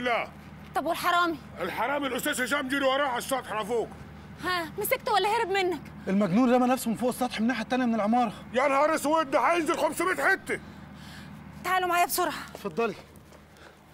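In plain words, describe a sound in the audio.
A young woman speaks with agitation nearby.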